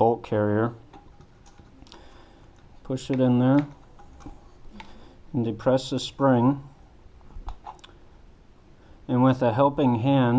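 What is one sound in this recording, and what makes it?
Metal parts click and snap as they are fitted together.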